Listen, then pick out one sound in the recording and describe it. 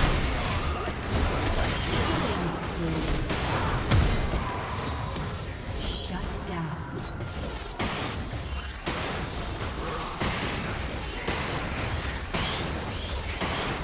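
Magic blasts and weapon hits clash rapidly in a game fight.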